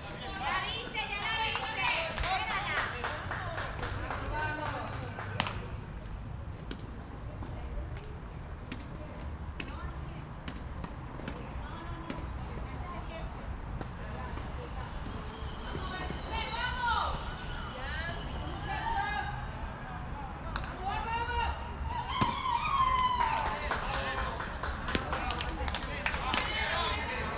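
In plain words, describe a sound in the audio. Men talk and call out across an open field.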